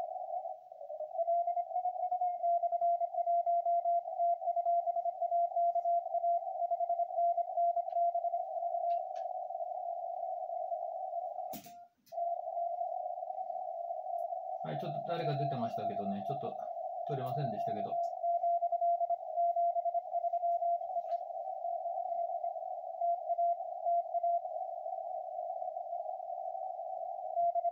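Morse code beeps sound rapidly from a radio.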